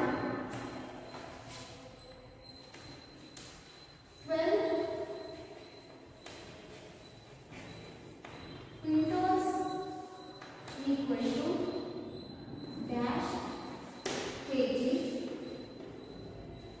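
A young woman speaks slowly and clearly, as if teaching.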